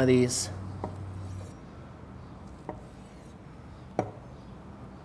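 A knife slices through a sausage and taps a wooden board.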